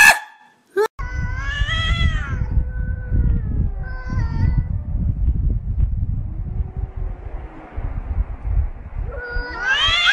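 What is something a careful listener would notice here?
Two cats growl and yowl at each other.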